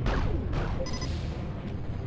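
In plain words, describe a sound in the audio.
Energy weapons zap in quick bursts.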